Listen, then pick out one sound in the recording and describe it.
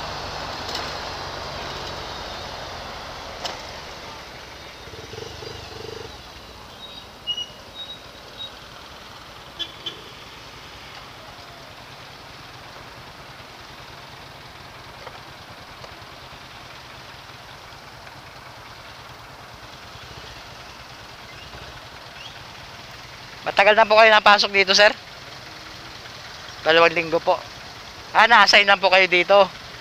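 A motorcycle engine hums low and steady in traffic.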